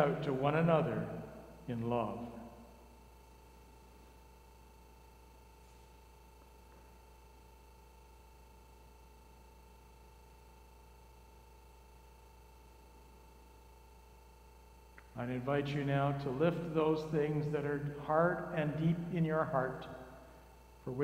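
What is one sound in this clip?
A man speaks slowly and solemnly through a microphone, with pauses.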